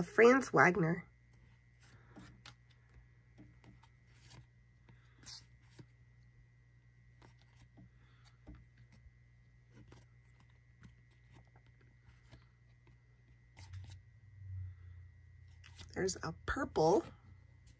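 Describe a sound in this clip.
Cards are shuffled and slid against each other by hand, with soft clicks and rustles.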